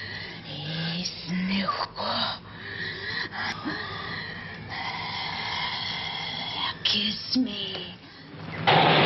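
A young woman talks softly, close by.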